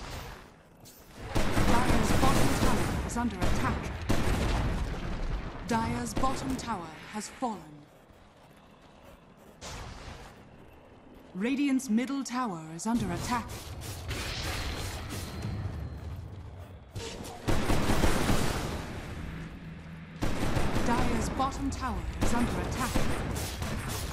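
Video game combat sounds clash and burst.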